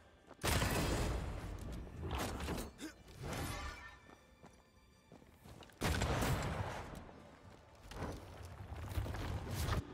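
Magic blasts burst and crackle loudly.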